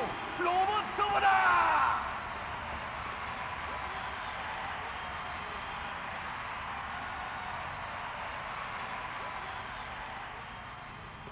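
A large crowd murmurs and cheers steadily.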